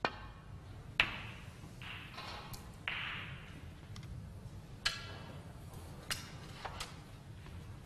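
Snooker balls clack against each other and knock off the cushions.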